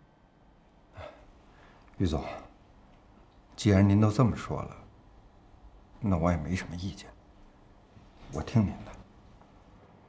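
A middle-aged man speaks calmly and slowly.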